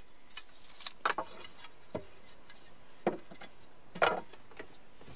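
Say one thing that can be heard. A wooden board knocks against wood.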